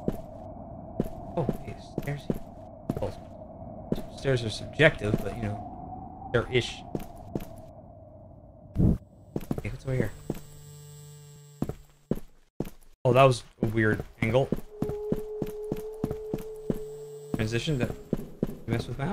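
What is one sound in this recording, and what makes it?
A man talks into a microphone close by, with animation.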